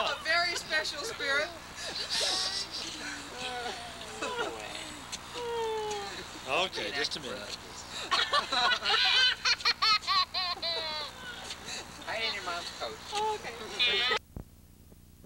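Several young men and women talk and laugh loudly together outdoors.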